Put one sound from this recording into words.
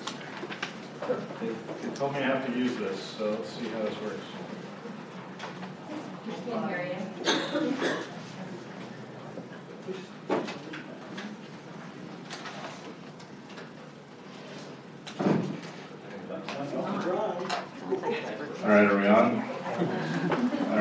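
A man speaks calmly into a microphone in a hall.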